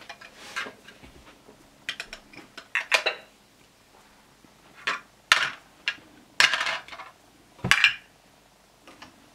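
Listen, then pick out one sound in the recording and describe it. Plastic toy pieces clatter and knock together.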